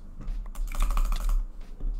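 Sword hits land on a player with quick, sharp thuds.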